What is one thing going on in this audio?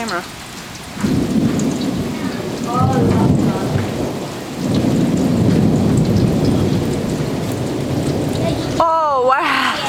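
Thunder rumbles deeply.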